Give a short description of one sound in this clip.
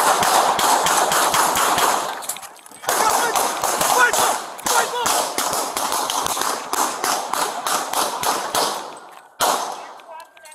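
Gunshots ring out in a rapid, loud burst outdoors.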